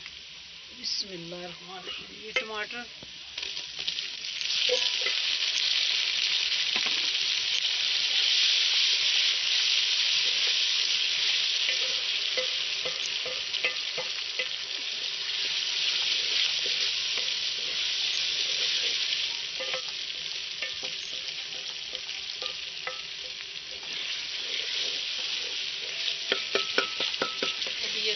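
A ladle scrapes and clinks against a metal pot.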